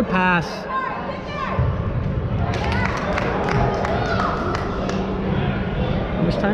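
Voices of spectators and players murmur and call out in a large echoing hall.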